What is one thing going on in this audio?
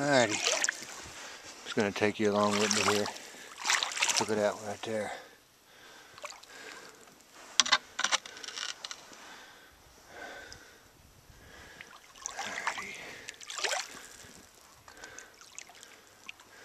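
A stick pokes and splashes in shallow water.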